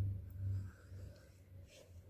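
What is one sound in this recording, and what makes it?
A paintbrush strokes across a canvas.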